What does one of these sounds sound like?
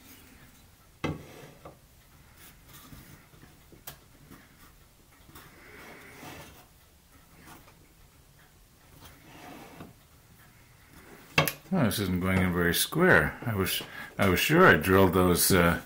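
A metal square clicks against wood.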